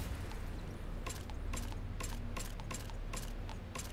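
Short interface clicks sound in quick succession.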